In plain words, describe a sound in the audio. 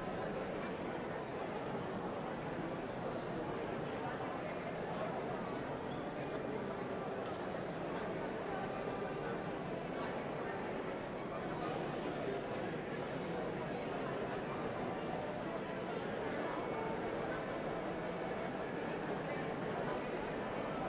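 An orchestra plays steadily in a large echoing hall.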